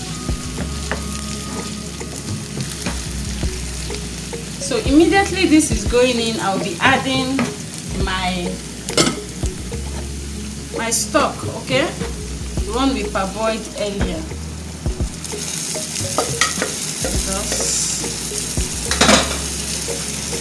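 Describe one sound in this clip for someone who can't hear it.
A wooden spoon scrapes and stirs food in a frying pan.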